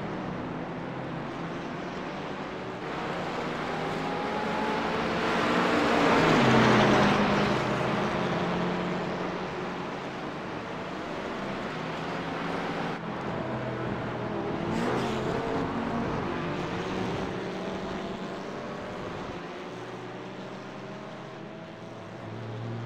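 Car engines rise in pitch as the cars accelerate and drop as they shift gears.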